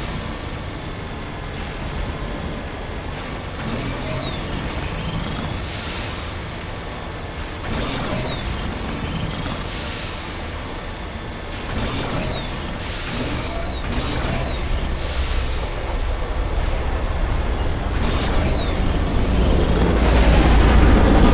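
A vehicle engine rumbles steadily as it drives over rough ground.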